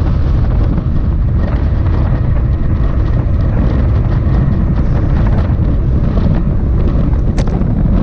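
Bicycle tyres hum steadily on smooth pavement.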